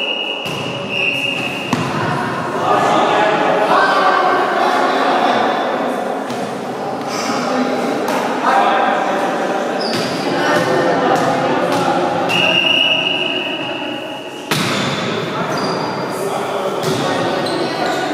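A volleyball thumps off players' hands in an echoing gym.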